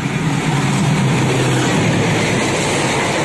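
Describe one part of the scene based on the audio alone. A diesel locomotive engine rumbles loudly as it passes close by.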